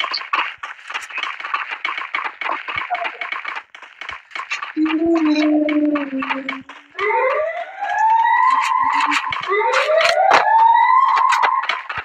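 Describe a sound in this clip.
Quick footsteps patter on a hard floor.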